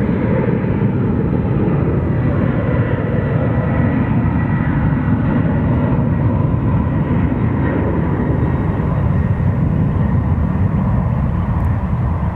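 A jet airliner's engines roar steadily in the distance as it speeds down a runway.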